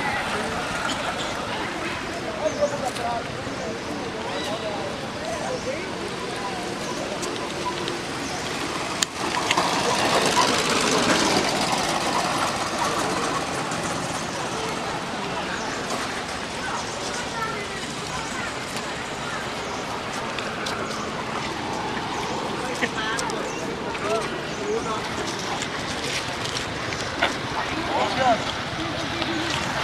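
A baby monkey squeaks and chirps close by.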